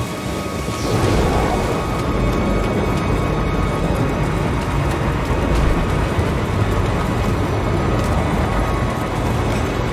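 Footsteps clatter quickly on a metal walkway.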